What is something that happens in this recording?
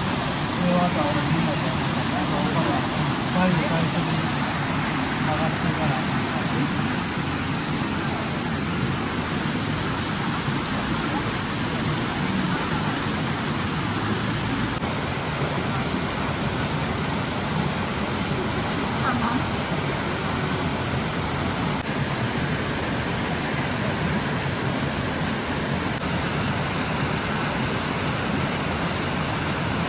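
A stream rushes over rocks close by.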